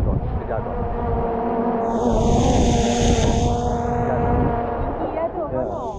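A small drone hums and whines overhead.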